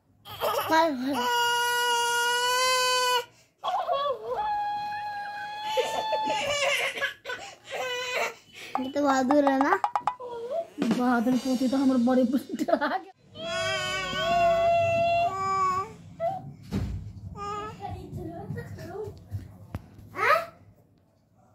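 A toy cactus repeats sounds in a high, squeaky voice.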